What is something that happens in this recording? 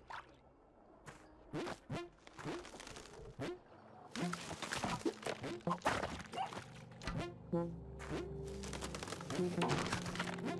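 Short video game sound effects pop and blip as a small character jumps and runs.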